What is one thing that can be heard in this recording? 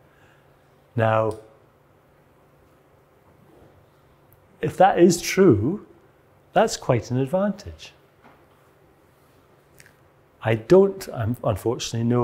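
A man lectures calmly with pauses, heard through a microphone.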